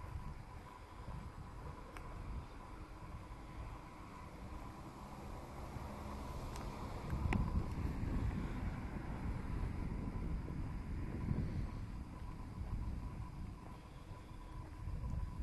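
Wheels roll steadily over a paved path.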